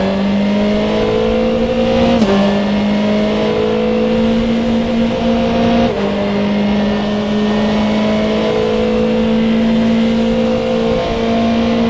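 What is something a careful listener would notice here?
A racing car engine roars at high revs, dropping in pitch briefly at each gear change.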